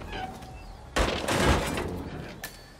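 A heavy plastic lid swings open with a rattling thud.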